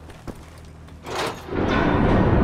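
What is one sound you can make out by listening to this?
A metal lever clunks as it is pulled.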